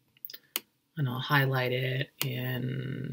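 A woman speaks calmly through a microphone, heard over an online call.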